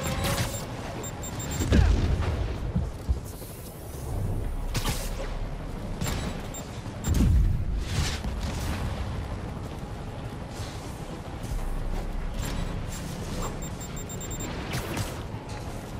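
Electricity crackles and zaps in sharp bursts.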